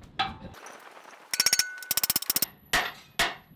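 A hammer strikes a punch through hot metal.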